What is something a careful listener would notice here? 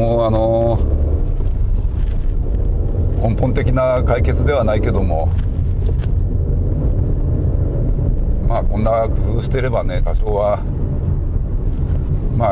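A car engine hums steadily with a low rumble from inside the cabin.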